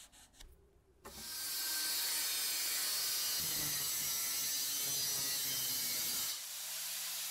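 An angle grinder whines loudly as it cuts through metal.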